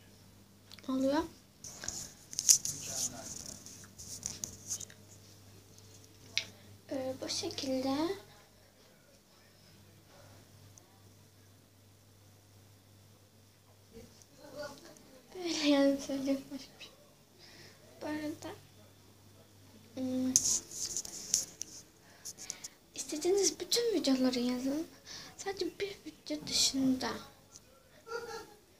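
A girl talks close to a phone microphone, with pauses.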